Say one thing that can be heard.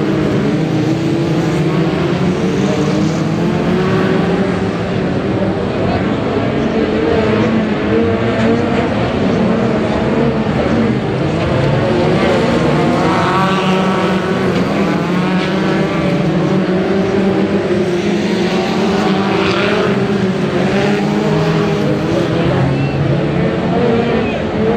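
Race car engines roar and rumble steadily outdoors.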